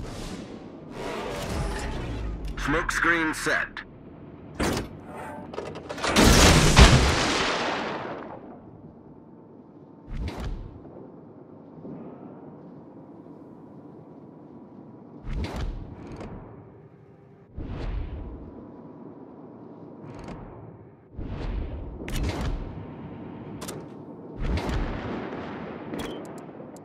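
Heavy ship guns fire with loud, deep booms.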